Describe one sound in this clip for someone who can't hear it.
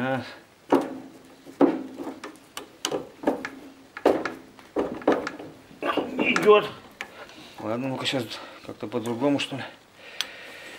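A metal wrench clicks and clanks against engine parts.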